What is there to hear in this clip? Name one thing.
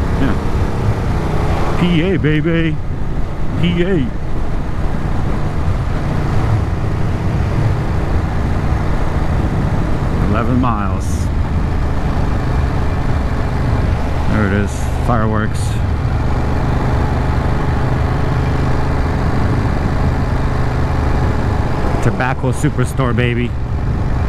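A motorcycle engine hums steadily and revs up and down.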